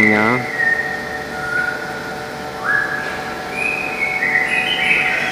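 A bus engine idles steadily nearby.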